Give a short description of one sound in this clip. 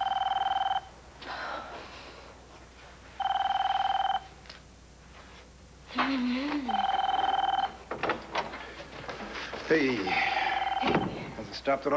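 A telephone rings repeatedly nearby.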